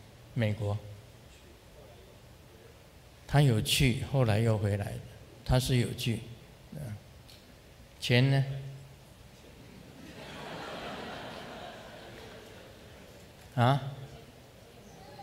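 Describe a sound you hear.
A middle-aged man speaks calmly into a microphone in short phrases, with pauses, in an echoing hall.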